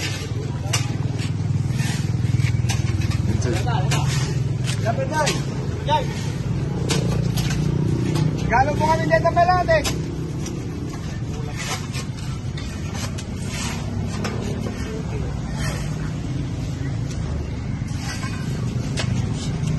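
Shovels scrape and thud into dirt and rubble.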